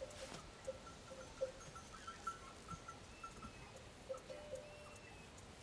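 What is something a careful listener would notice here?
A bull walks slowly through grass.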